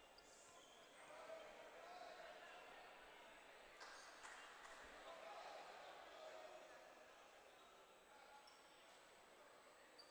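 Men talk faintly in a large echoing hall.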